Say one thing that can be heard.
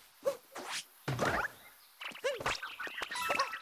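A burst of small chirping cries rises suddenly.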